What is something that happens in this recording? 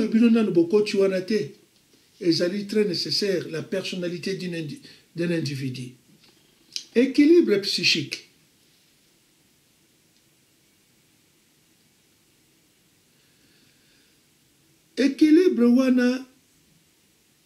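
An elderly man speaks calmly and close up, with long pauses.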